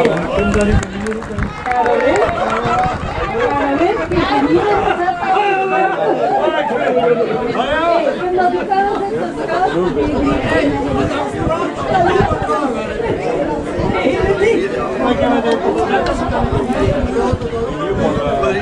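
Several men talk among themselves nearby, outdoors.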